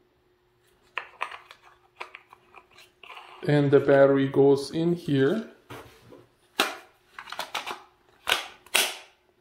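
Hard plastic parts click and knock as they are handled close by.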